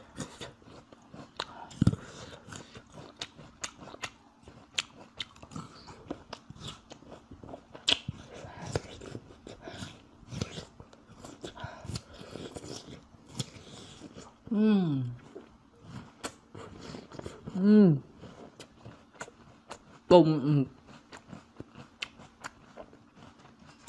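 A man chews food noisily and smacks his lips close to a microphone.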